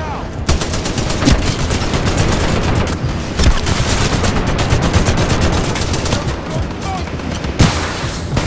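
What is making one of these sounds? A rifle fires in rapid bursts, with sharp cracks.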